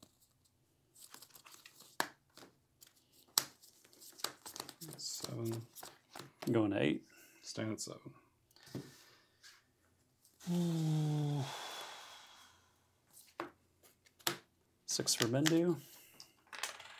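Playing cards slap and slide onto a table.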